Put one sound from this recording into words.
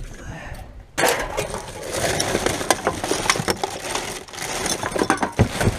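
A plastic bag crinkles and rustles in gloved hands.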